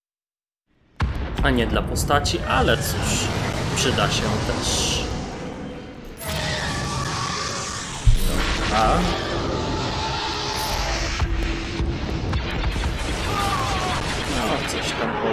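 Laser blasts fire rapidly in a space battle.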